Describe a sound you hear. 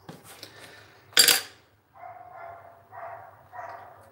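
A pencil is set down on a hard table with a light tap.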